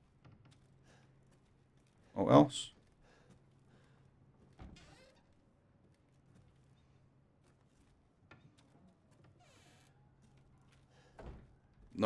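A man talks quietly into a microphone.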